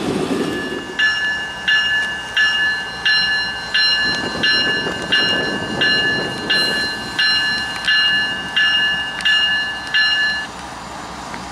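A locomotive bell rings in a steady, repeating rhythm.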